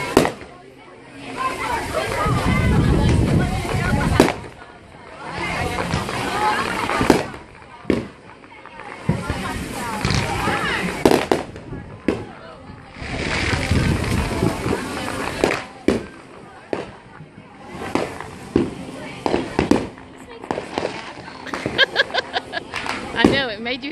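Fireworks crackle and hiss as they burn out.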